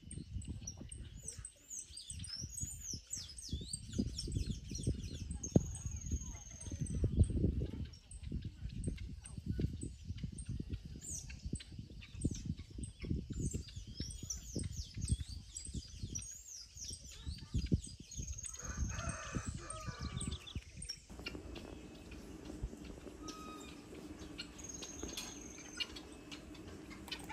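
A wire gate rattles and creaks as it is opened.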